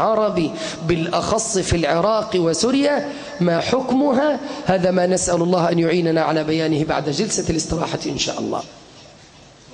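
A man preaches with passion into a microphone, his voice loud and echoing.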